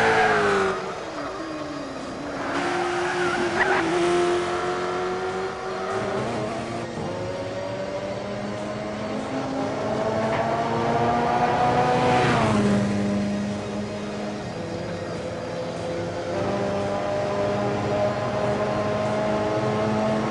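Racing car engines roar and whine, rising in pitch and dropping as the gears change.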